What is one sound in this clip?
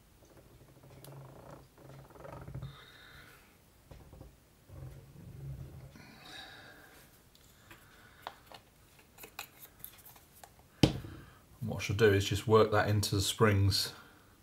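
Metal springs clink softly as they are handled.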